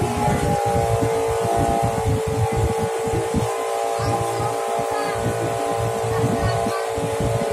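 Wind gusts roughly outdoors.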